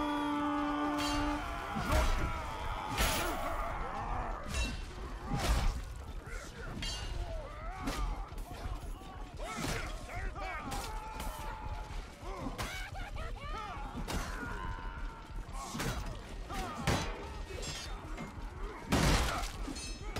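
Men shout and grunt in battle.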